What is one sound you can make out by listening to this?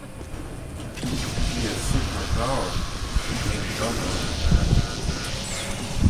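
An energy beam crackles and buzzes as it fires.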